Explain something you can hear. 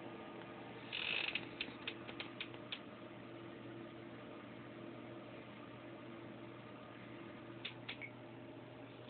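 A small hamster's claws patter and scratch on a hard surface.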